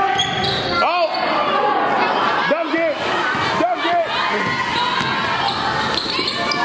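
A crowd of spectators cheers and chatters.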